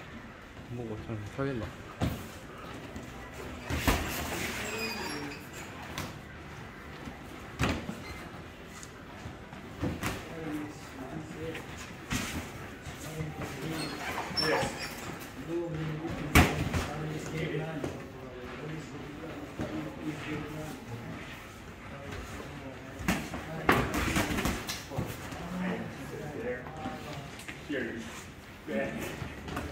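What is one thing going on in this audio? Boxing gloves thud against gloves and pads in sharp, irregular punches.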